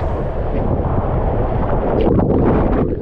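Water rushes and roars down a tube slide.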